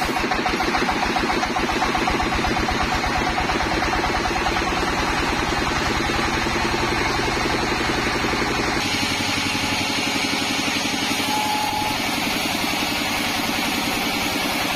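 A sawmill motor hums and rattles.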